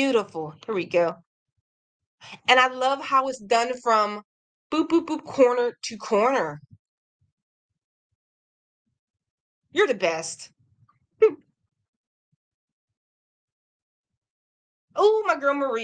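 A young woman talks calmly and expressively through a computer microphone.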